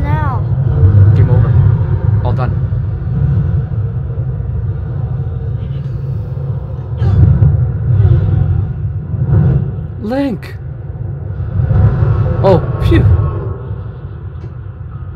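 Deep booming blasts and rumbling roar on and off.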